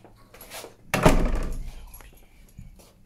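A door bangs shut nearby.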